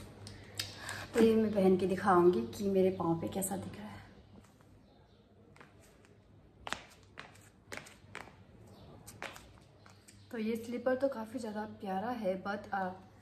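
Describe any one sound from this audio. A young woman talks to the microphone close up, with animation.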